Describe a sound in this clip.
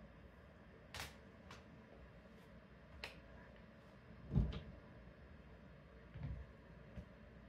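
Footsteps thump on the floor.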